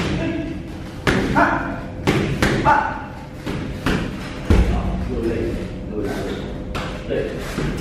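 Gloved punches thud sharply against padded mitts.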